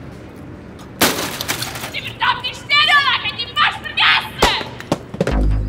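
A young woman shouts angrily nearby.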